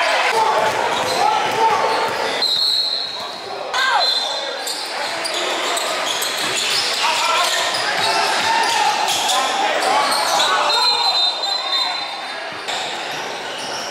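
A crowd of young people chatters in an echoing gym.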